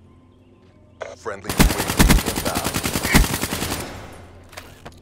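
An assault rifle fires in rapid automatic bursts.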